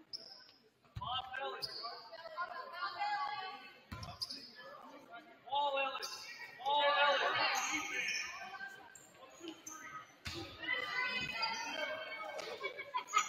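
A crowd of spectators shouts and cheers in an echoing gym.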